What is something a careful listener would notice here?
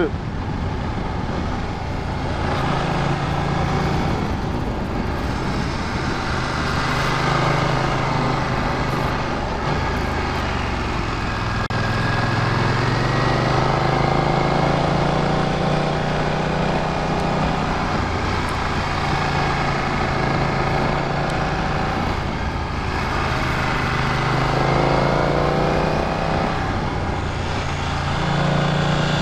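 A motorcycle engine hums steadily, rising and falling in pitch as it speeds up and slows down.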